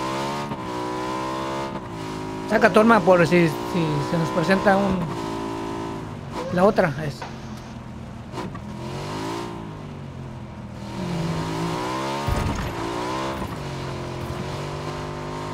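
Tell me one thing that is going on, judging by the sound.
A vehicle engine hums steadily and revs.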